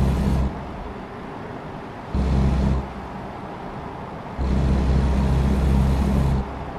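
A truck engine drones low, surging in loud bursts.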